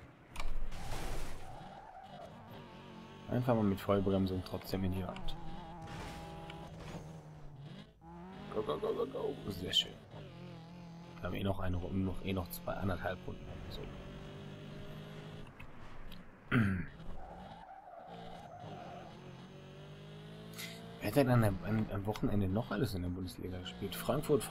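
Tyres screech as a car drifts through corners.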